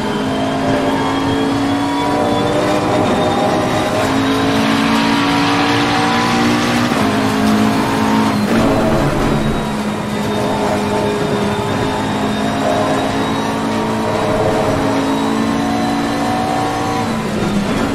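A racing car engine roars, rising in pitch and dropping as it changes gear.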